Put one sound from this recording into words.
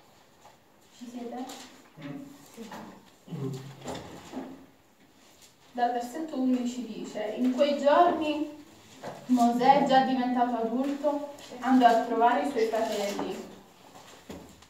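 A young woman sings through a microphone with a wavering voice.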